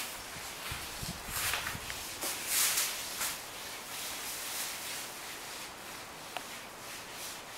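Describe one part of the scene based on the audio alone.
A hand tool scrapes over a wooden floor.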